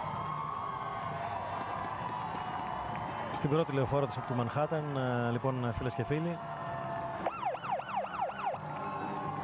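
A crowd cheers along the street.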